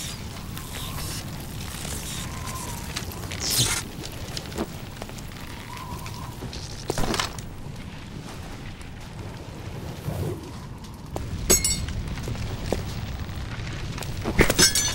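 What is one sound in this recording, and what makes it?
A sword swishes sharply through the air.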